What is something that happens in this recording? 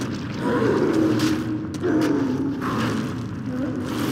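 A heavy blade hacks into flesh with wet thuds.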